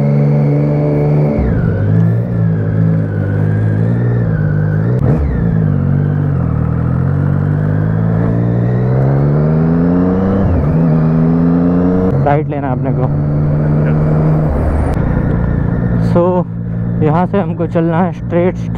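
A motorcycle engine rumbles close by, revving up and shifting gears as it speeds up.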